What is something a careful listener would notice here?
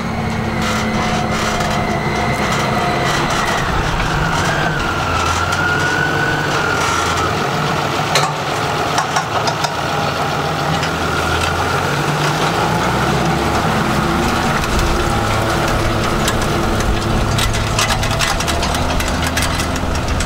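A cultivator rattles and clanks as it drags through dry soil.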